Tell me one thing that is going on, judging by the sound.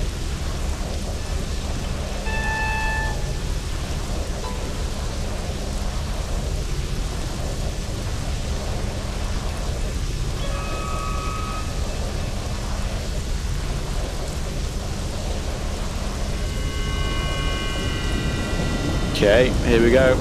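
An energy beam hums and crackles steadily.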